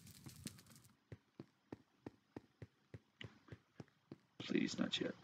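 Footsteps tap steadily on a hard surface.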